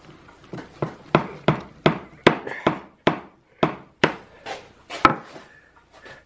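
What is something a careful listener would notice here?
Wooden parts knock together as a joint is pressed into place.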